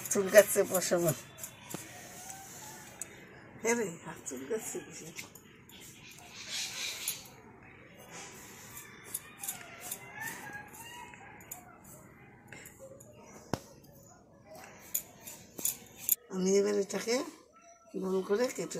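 A peeler scrapes the skin off a gourd in short strokes.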